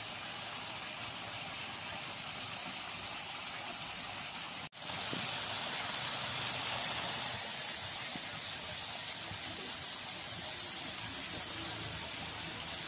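A thick stew bubbles and sizzles steadily in a pot.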